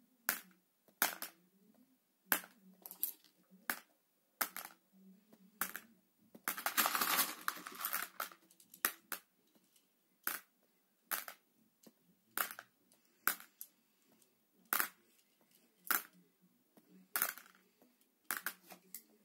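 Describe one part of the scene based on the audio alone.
A finger taps a touchscreen again and again.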